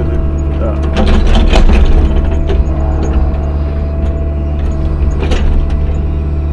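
Clods of dirt thud and clatter out of a metal bucket.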